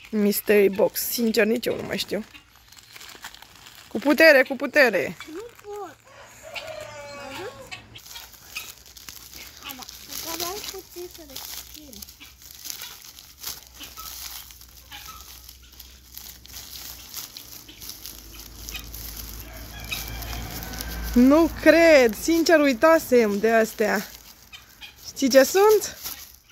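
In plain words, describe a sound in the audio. Plastic wrapping rustles and crinkles as it is torn open.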